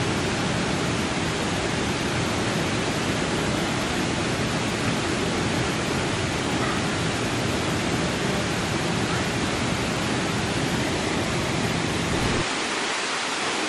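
Water rushes and splashes steadily outdoors.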